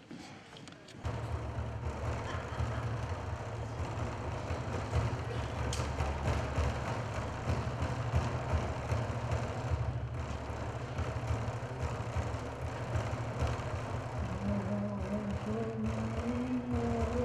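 A drum is beaten in a fast, steady rhythm.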